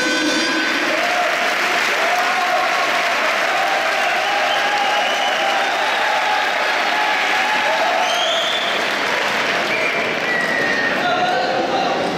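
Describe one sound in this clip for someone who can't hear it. A group of young men and women sing together loudly.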